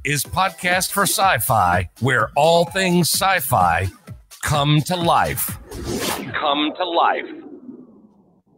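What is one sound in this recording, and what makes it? A man talks with animation into a close microphone over an online call.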